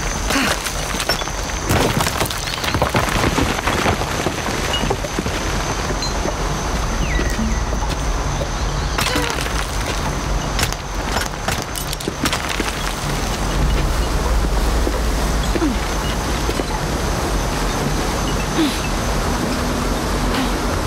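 A climber's hands and boots scrape and knock against rock.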